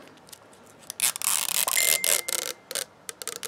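Sticky tape peels off a plastic ball with a crackle.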